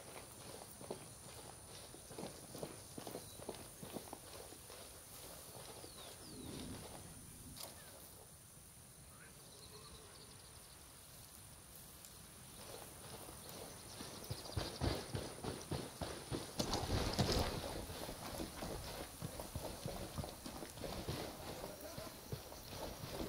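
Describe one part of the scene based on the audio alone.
Footsteps crunch through dry grass on a rocky dirt slope.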